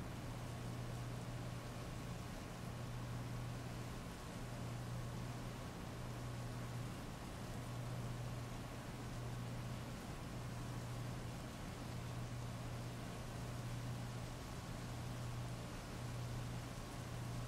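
Heavy rain pours steadily onto wet pavement outdoors.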